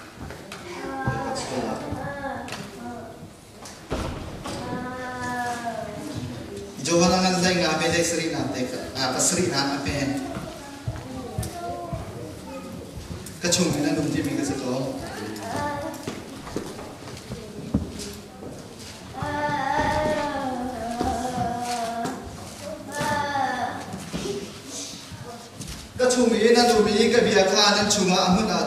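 A man preaches with animation through a microphone and loudspeakers in a large echoing hall.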